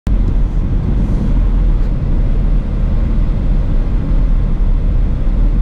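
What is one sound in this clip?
Wind and road noise rumble low and steady inside a moving car.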